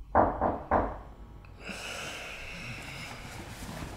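Bedding rustles as a person shifts in bed.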